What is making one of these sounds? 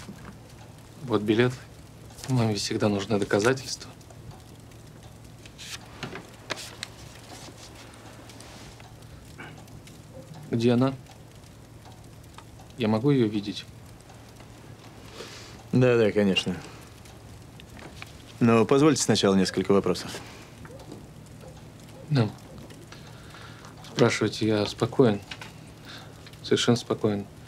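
A man speaks quietly and slowly nearby.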